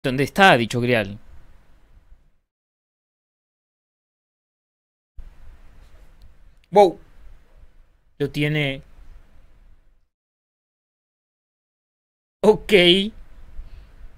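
A young man speaks dramatically into a close microphone, in short bursts with pauses.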